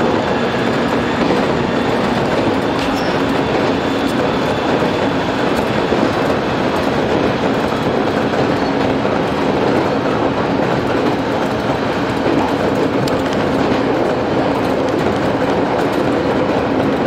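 A train rumbles steadily along the tracks at speed.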